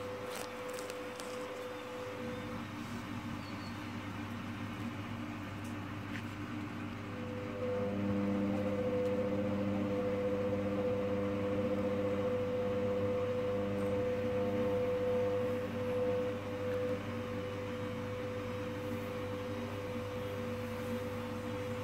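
A washing machine drum turns with a steady low hum.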